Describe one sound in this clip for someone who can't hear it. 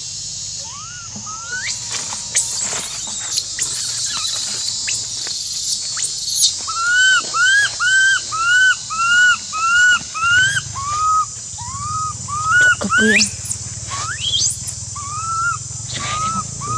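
A baby monkey gives high, repeated squealing cries close by.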